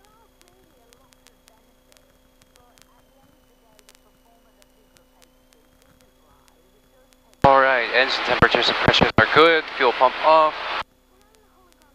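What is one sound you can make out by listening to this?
An aircraft engine drones steadily and faintly in the background.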